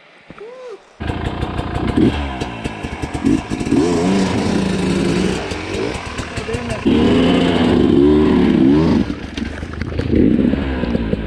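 A dirt bike engine idles with a steady rattle.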